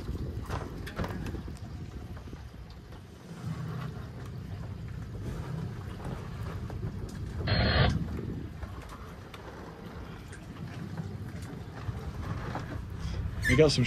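Wind blusters outdoors on open water.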